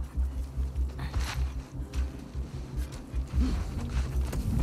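Tall grass rustles as someone crouches and moves through it.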